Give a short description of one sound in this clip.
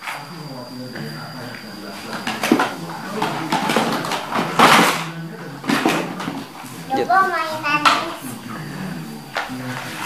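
Plastic toys clatter and knock as a young boy rummages through a cardboard box.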